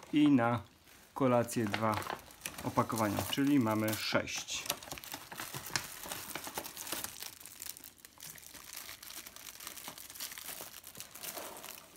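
A plastic bag rustles and crinkles as it is handled.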